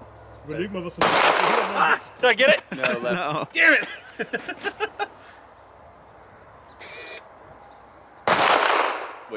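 A pistol fires sharp shots that echo outdoors.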